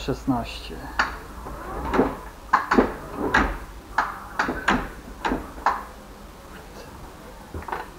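Plastic knocks and rattles as a handle is gripped and moved.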